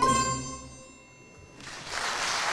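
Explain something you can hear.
An orchestra of plucked strings ends a piece on a ringing chord.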